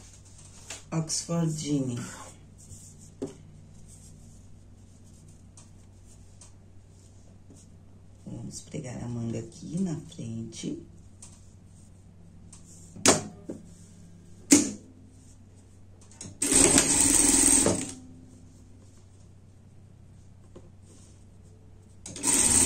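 Cloth rustles as it is handled and smoothed.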